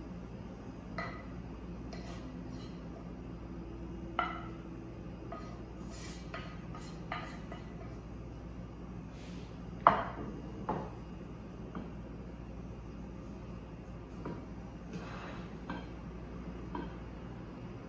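Utensils clink and scrape against a plate.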